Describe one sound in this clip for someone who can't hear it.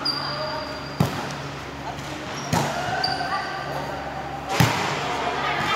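A volleyball is struck with sharp slaps that echo around a large hall.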